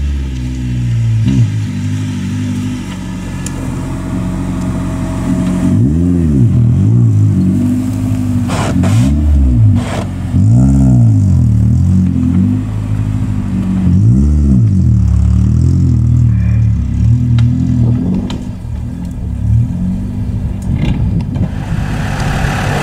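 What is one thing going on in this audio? An off-road vehicle's engine revs hard, rising and falling.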